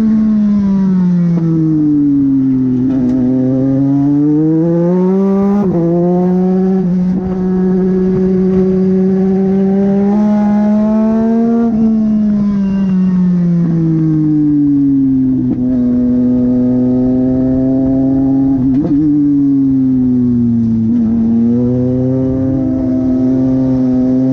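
A racing car engine roars loudly up close, rising and falling in pitch as it shifts gears.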